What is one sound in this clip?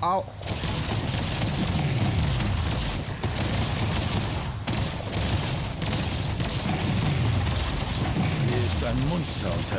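Gunfire crackles rapidly in bursts.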